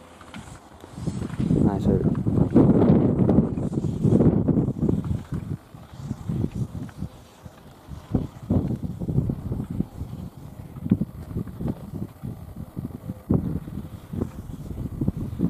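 Skis scrape and carve across hard snow in quick turns.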